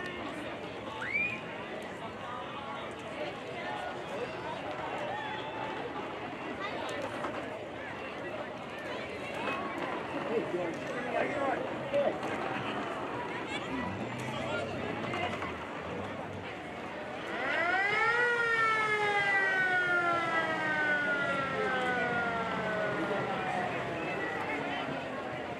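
A crowd of spectators chatters and cheers outdoors.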